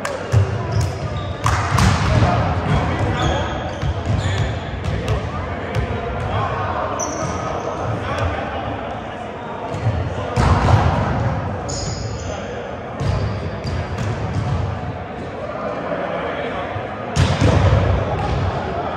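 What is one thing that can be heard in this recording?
Young men talk and call out in a large echoing hall.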